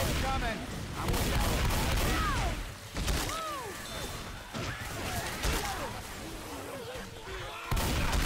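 Zombies snarl and growl close by.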